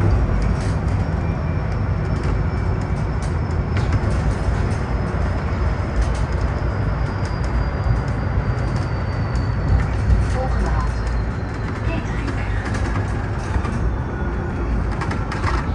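Loose fittings rattle inside the bus.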